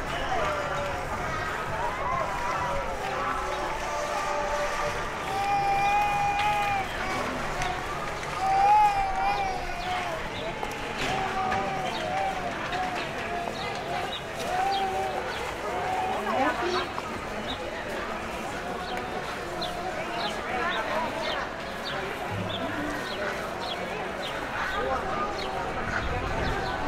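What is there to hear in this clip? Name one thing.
People chatter nearby outdoors on a busy street.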